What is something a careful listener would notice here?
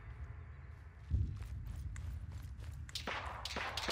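A smoke grenade bursts with a dull thud nearby.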